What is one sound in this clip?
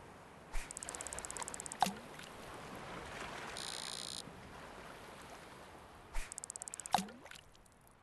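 A fishing reel ratchets with rapid clicks.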